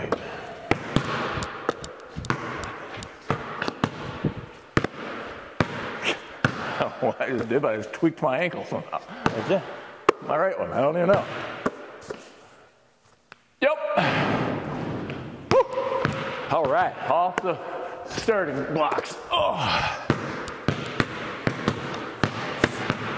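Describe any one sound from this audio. Basketballs bounce on a hard floor, echoing in a large hall.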